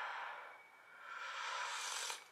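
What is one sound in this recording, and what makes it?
A young woman slurps soup noisily.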